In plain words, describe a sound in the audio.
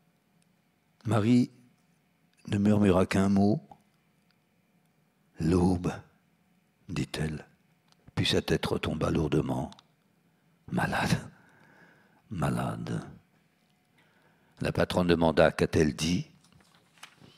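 An elderly man reads aloud slowly and calmly into a microphone, with pauses between phrases.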